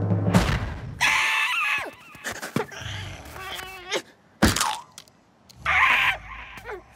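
A cartoon bird squawks and screeches shrilly.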